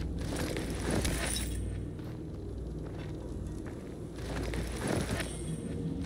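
Hands rummage briefly through a body's belongings.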